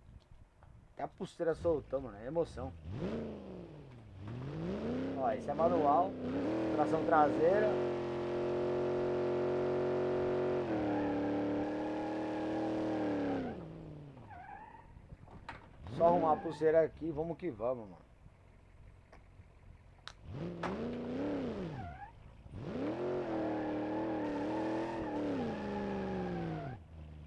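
A car engine revs hard and roars, rising and falling in pitch.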